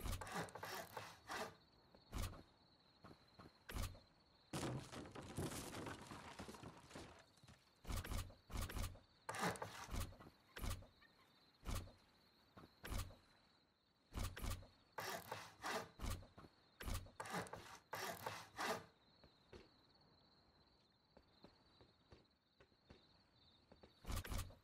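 Wooden planks knock into place with loud, hollow thuds, again and again.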